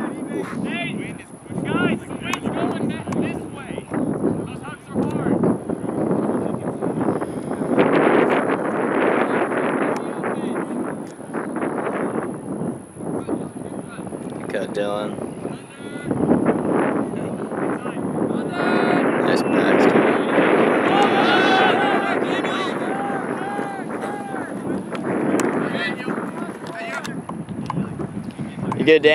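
Young men call and shout to each other across an open field outdoors.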